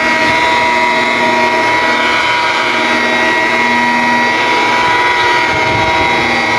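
A power polisher whirs steadily as its pad buffs a car's paint.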